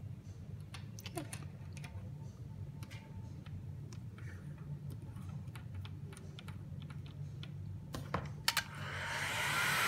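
Small plastic parts click and tap as fingers press a connector together.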